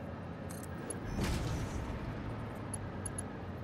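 A building piece snaps into place with a swelling whoosh.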